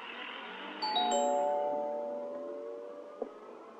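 A glass door swings open.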